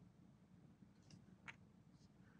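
A small tool taps and scrapes lightly on plastic.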